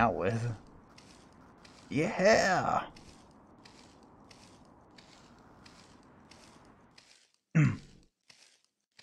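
Footsteps crunch steadily on a stone path.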